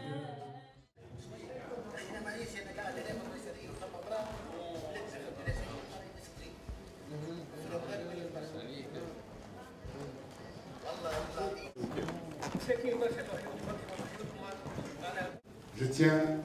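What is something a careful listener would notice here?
A man's voice speaks with animation through a loudspeaker in a large room.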